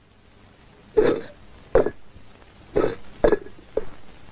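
Clay pots are knocked with a hollow thud.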